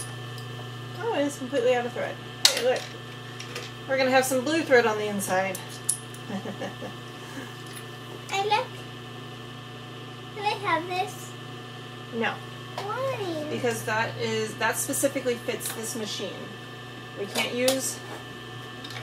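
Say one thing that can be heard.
A young girl talks nearby in short, lively bursts.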